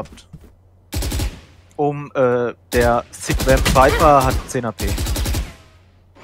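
A rifle fires in quick bursts of sharp shots.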